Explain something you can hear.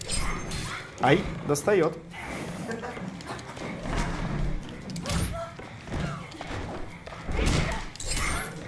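Heavy punches and kicks thud and crack in a fight.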